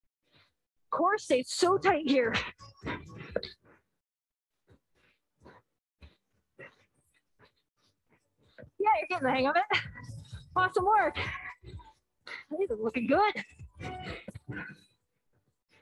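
A woman speaks with animation through a microphone over an online call.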